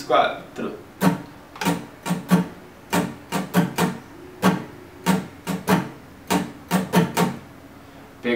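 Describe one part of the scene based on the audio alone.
An acoustic guitar is strummed in short, rhythmic bursts of chords.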